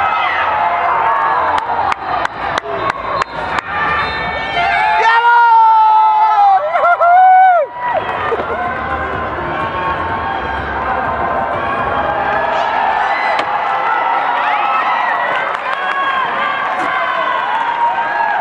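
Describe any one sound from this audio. Children shout and call out across a large open stadium.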